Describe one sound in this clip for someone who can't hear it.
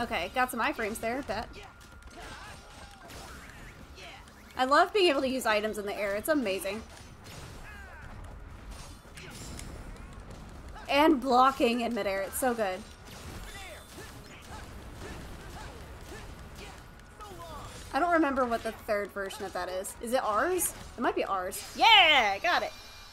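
Weapons clash and magic blasts crackle in a fast fight.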